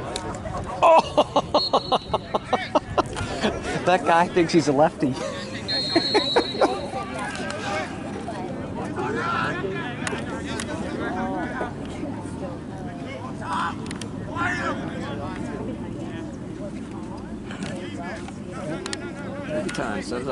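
Young men shout across an open field at a distance.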